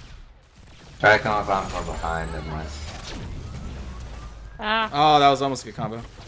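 Magic blasts and clashing weapons ring out in a game battle.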